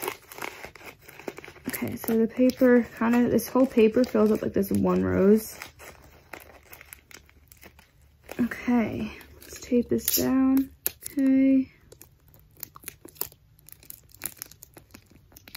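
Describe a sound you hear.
Plastic wrapping crinkles as it is unwrapped.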